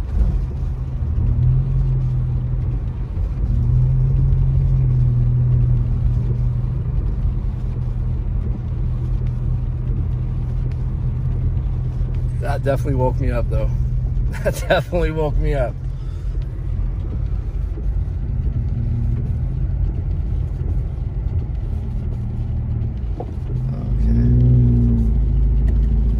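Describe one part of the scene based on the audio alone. Tyres crunch over packed snow.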